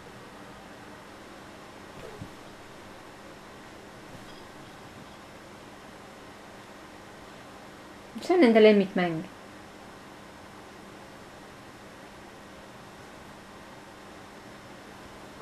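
A cat paws and rustles at a bedspread.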